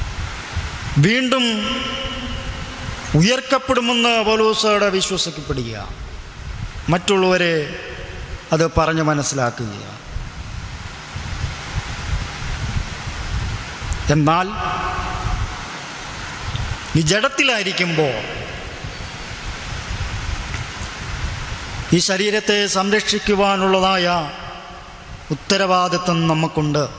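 A young man speaks with feeling into a microphone, in bursts with pauses.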